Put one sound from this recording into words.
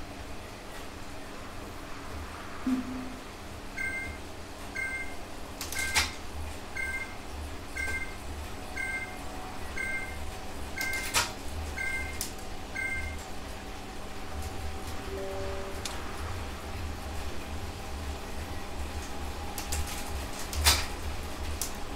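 A bike trainer whirs and thumps steadily under pedalling.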